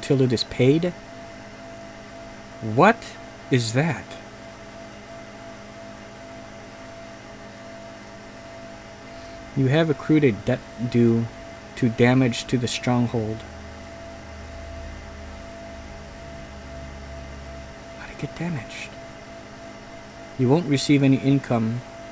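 A man speaks calmly and close to a microphone, in short bursts.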